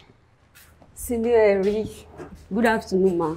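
A young woman speaks politely, close by.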